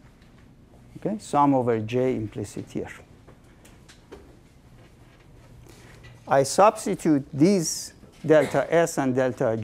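A middle-aged man speaks in a lecturing tone.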